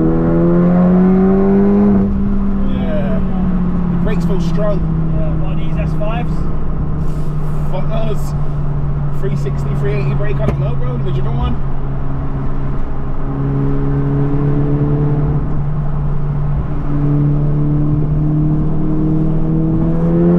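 A car engine hums and revs steadily throughout.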